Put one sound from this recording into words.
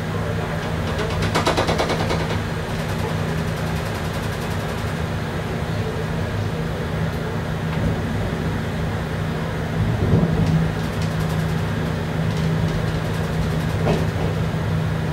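Train wheels click and squeal over switches.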